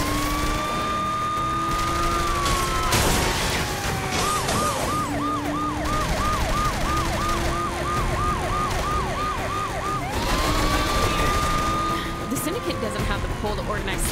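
A police siren wails, then switches to a fast yelp and back to a wail.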